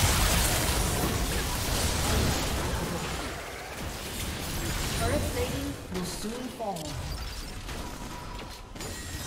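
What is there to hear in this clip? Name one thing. Magic spells blast and crackle in a frantic battle.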